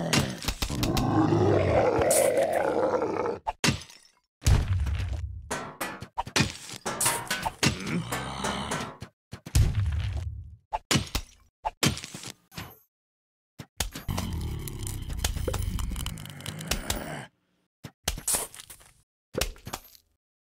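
Bubbles pop with soft splats as they strike zombies.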